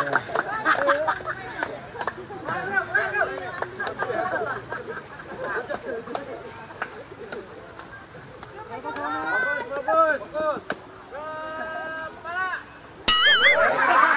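A group of young men and women chatter and call out to each other outdoors.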